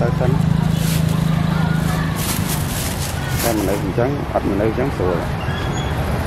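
A plastic scoop scrapes through rice.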